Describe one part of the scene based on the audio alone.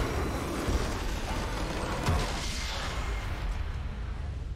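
A triumphant game fanfare plays.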